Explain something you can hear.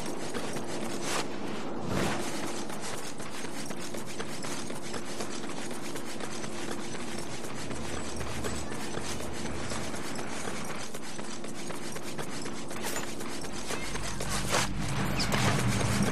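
Footsteps patter quickly on hard ground as a runner sprints.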